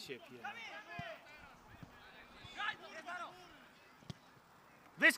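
A football is kicked with a dull thump.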